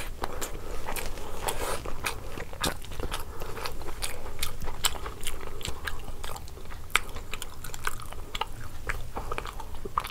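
A woman chews food loudly and wetly close to a microphone.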